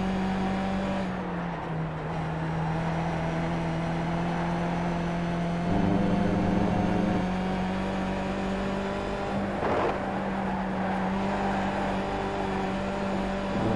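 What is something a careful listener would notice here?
A racing car engine drones steadily, its pitch shifting up and down with the gears.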